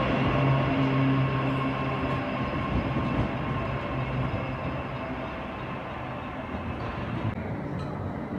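An electric passenger train hums as it pulls away from a platform.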